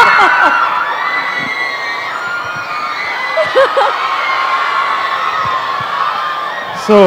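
A large crowd of young women cheers and screams loudly in an echoing hall.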